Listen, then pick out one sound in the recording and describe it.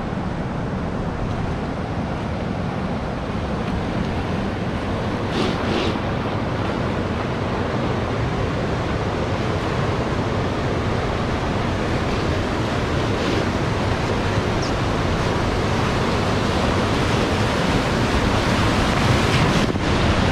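River rapids rush and roar, growing louder as they draw near.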